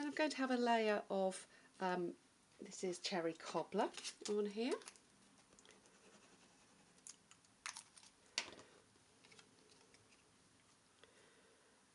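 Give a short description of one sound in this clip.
Paper rustles and slides as it is handled.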